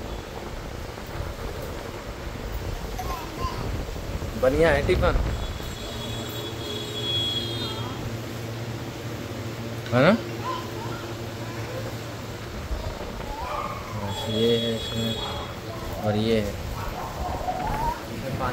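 Plastic wrapping crinkles as it is handled.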